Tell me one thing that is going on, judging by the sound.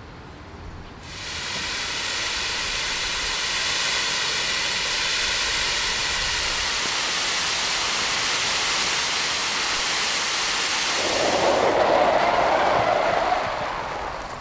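A fire hose sprays a powerful jet of water with a loud hiss.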